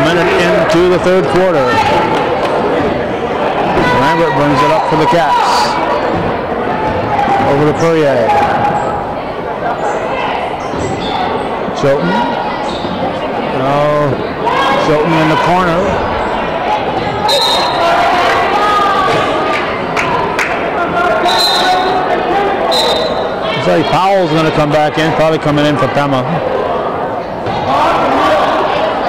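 A crowd of spectators shouts and cheers in an echoing hall.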